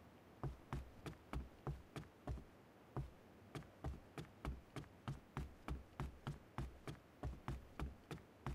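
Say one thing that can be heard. A rifle fires single shots in a steady, quick rhythm.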